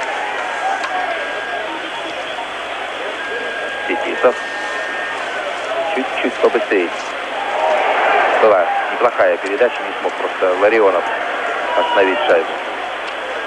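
A large crowd cheers and roars in an echoing arena.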